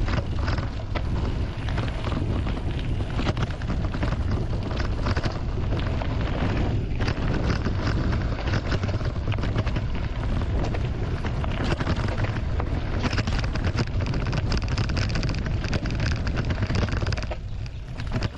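Wind rushes and buffets loudly past the microphone.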